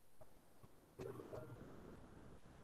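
A middle-aged man speaks briefly over an online call.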